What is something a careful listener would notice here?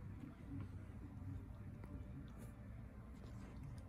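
A cat chews and licks a treat close by.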